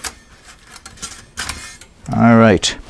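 Thin metal plates clink and rattle as they are handled.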